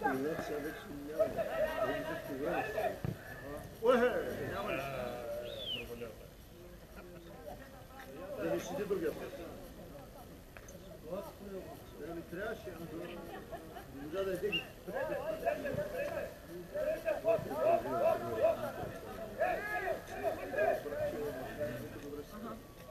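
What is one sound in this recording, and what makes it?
Several men talk and call out nearby in an open space.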